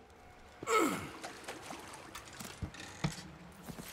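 A wooden chest lid thumps open.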